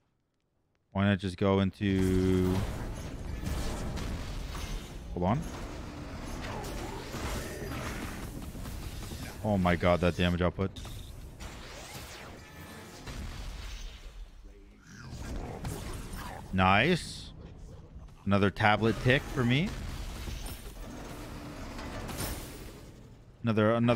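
Game sound effects of spells and impacts play.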